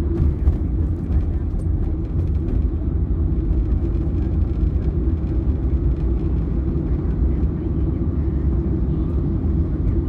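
A car engine rumbles steadily from inside the moving car.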